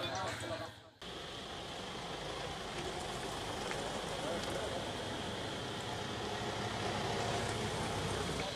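Car engines hum as vehicles drive slowly past.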